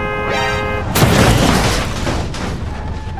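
A car crashes hard into another car with a loud crunch of metal.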